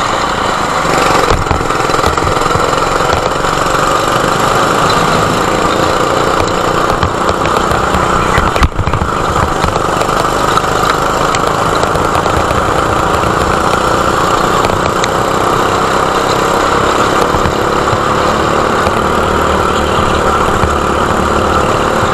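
A kart engine buzzes loudly up close, revving and droning steadily.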